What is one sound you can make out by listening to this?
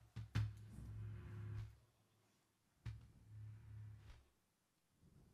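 Wooden box drums are struck with sharp slaps that ring on in a deep hum.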